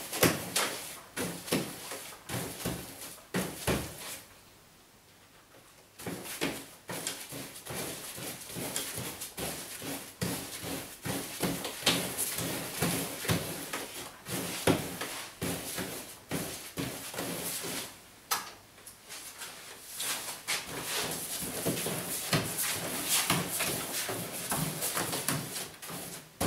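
A pasting brush swishes and slaps paste onto wallpaper.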